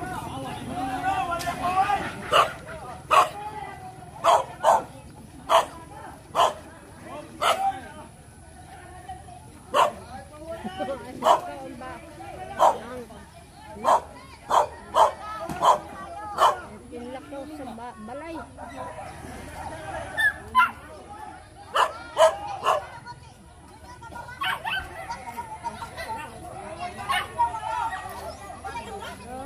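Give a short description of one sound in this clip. A group of men call out and talk outdoors.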